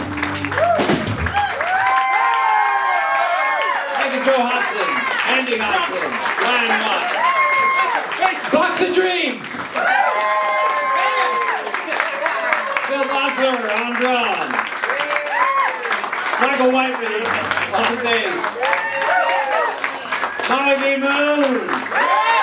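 Several men sing together into microphones.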